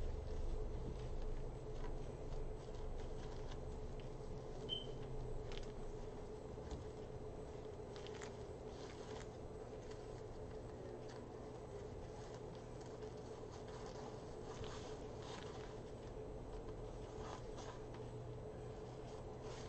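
Plastic mesh rustles and crinkles close by.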